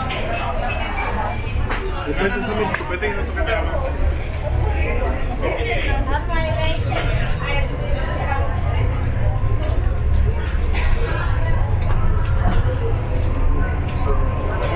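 Many people chatter all around in a large room.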